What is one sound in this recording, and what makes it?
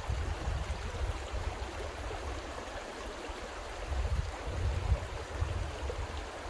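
A stream trickles gently nearby.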